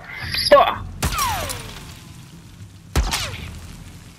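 A rifle fires sharp, loud shots that echo briefly.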